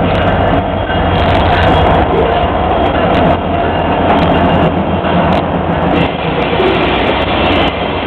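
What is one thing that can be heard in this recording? Steel wheels clatter over the rails.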